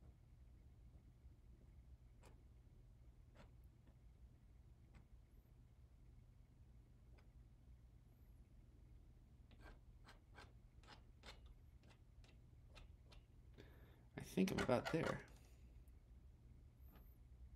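A palette knife scrapes softly on a painted surface.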